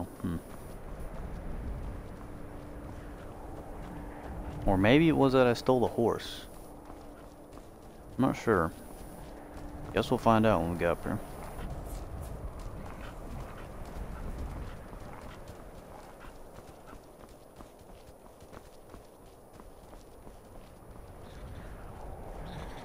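Footsteps crunch on stone.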